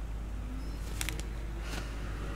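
Paper rustles.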